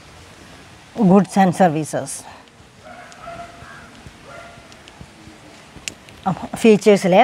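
A woman speaks calmly, as if teaching.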